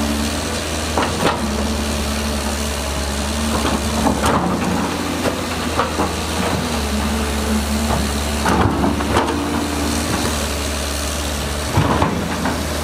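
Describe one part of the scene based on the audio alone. An excavator's metal bucket clanks and scrapes.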